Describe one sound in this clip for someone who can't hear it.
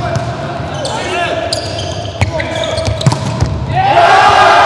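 A volleyball is struck hard several times in an echoing hall.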